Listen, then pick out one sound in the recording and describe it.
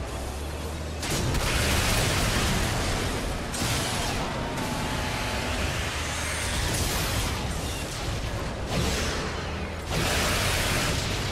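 Missiles explode in blasts.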